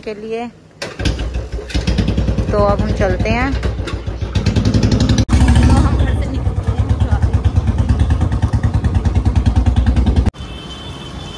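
A motorcycle engine idles with a steady, rapid thumping.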